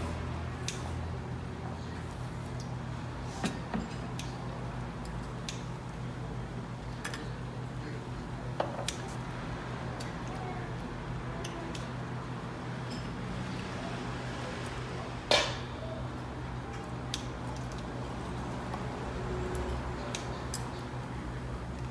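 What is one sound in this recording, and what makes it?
Liquid glugs as it is poured from a bottle.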